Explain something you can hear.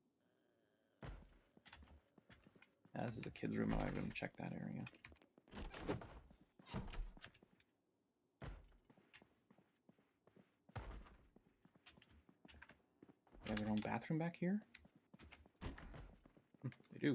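Footsteps walk across a floor indoors.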